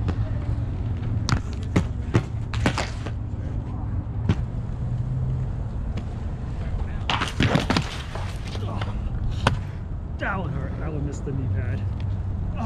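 A skater falls and thuds onto concrete.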